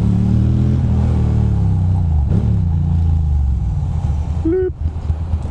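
Wind buffets outdoors as the motorcycle rides.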